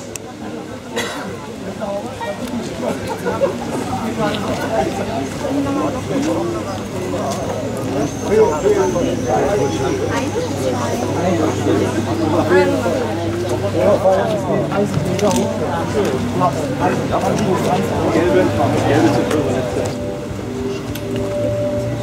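A crowd of men and women chat nearby outdoors.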